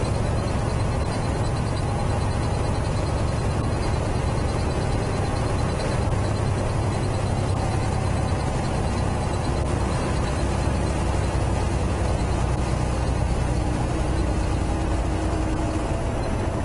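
Tyres hum on the road.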